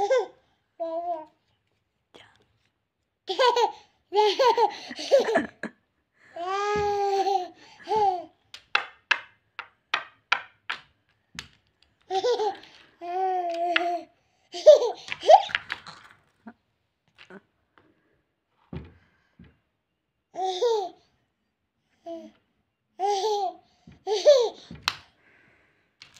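A toddler laughs and babbles close by.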